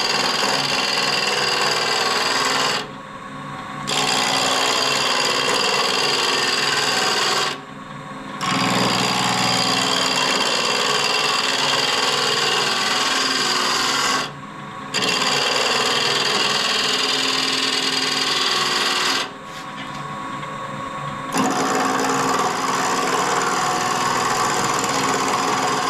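A wood lathe motor hums steadily.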